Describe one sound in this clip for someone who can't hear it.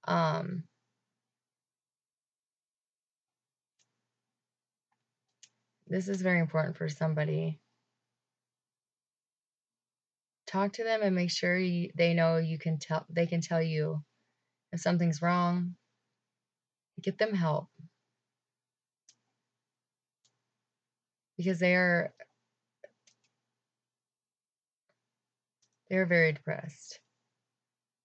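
A young woman speaks calmly and close to a microphone, in short bursts with long pauses.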